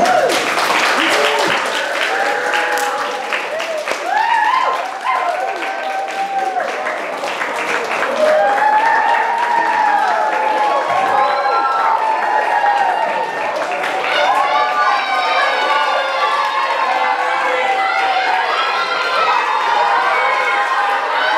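Young children sing together, echoing in a large hall.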